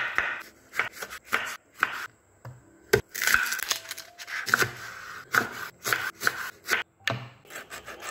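A knife taps against a wooden chopping board.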